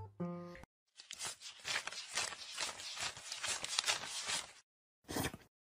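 Paper banknotes riffle and flick.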